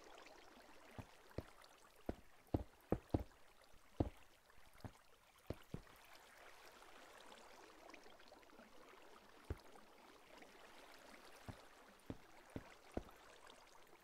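Blocks thud sharply as they are placed, in quick irregular bursts.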